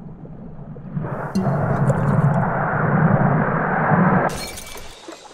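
A glass ball rolls along a rail with a low, steady rumble.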